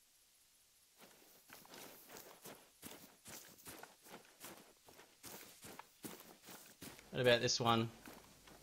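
Footsteps rustle through tall grass.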